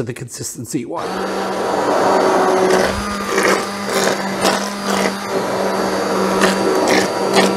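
An electric hand blender whirs steadily in liquid.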